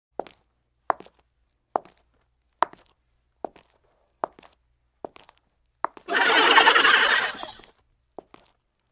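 Footsteps tap at an even, steady pace.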